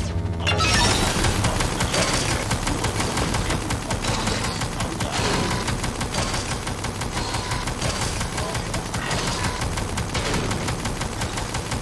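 A laser turret fires with buzzing zaps.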